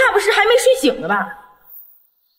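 A woman speaks clearly and close by, in a questioning tone.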